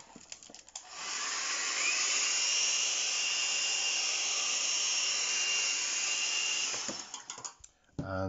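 A hair dryer blows steadily with a high whine.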